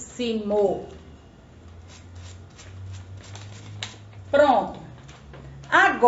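Paper rustles in a woman's hands.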